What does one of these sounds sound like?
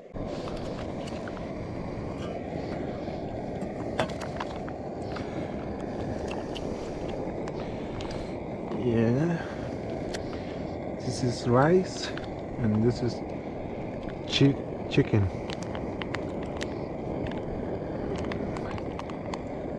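A plastic pouch rustles and crinkles.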